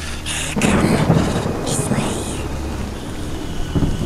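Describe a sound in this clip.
A creature speaks in a raspy, hissing voice close by.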